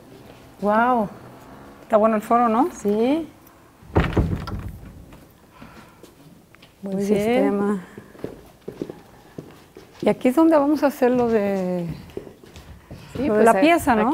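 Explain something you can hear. A middle-aged woman speaks with animation nearby.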